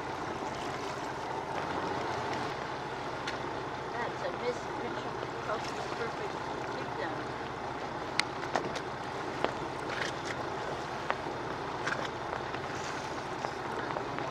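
Wind blows steadily outdoors over open water.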